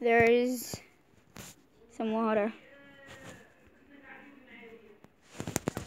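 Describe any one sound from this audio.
A young girl speaks with animation close to a microphone.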